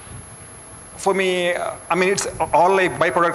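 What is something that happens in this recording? A man speaks into a microphone in a large room, with a slight echo.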